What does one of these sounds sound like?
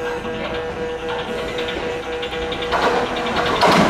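An idling electric train hums steadily nearby.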